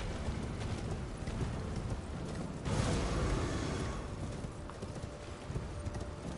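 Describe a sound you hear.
Horse hooves clop rapidly on stone.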